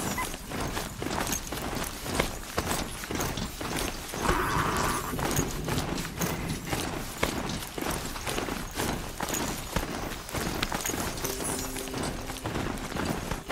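Heavy mechanical footsteps crunch through snow at a steady pace.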